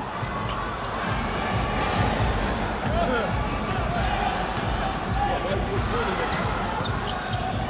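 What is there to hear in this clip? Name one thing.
A large indoor crowd murmurs and cheers steadily in an echoing arena.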